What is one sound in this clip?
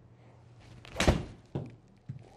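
A golf club strikes a ball with a sharp smack.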